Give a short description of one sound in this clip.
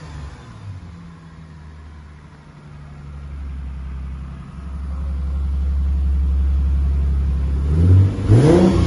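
A car engine idles with a deep, steady rumble.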